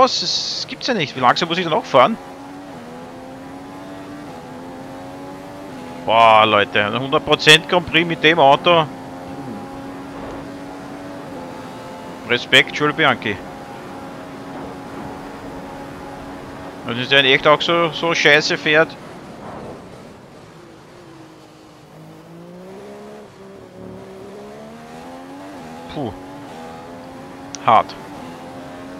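A racing car engine whines steadily, rising and falling in pitch as the car speeds up and slows.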